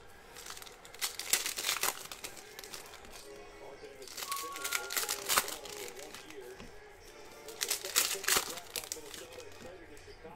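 Foil card packs crinkle and tear open.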